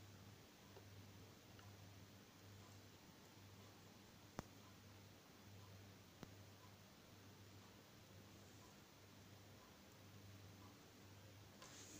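A wooden stick knocks lightly against a glass jar.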